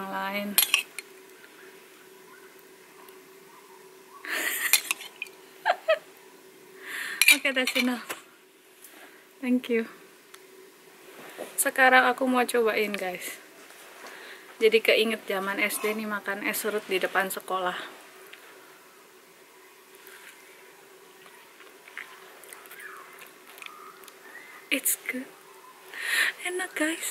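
A young woman talks and laughs close by.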